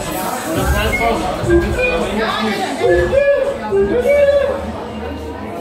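A crowd of men and women chatter nearby.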